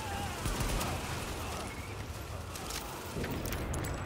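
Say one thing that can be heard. A fire roars and crackles close by.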